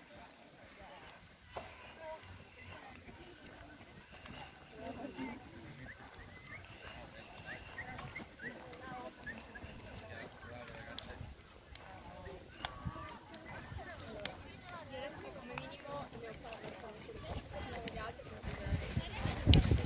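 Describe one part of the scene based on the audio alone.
Girls and young women talk and call out to each other nearby, outdoors.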